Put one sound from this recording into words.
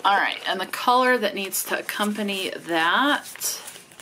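Stiff paper cards rustle and slide against each other.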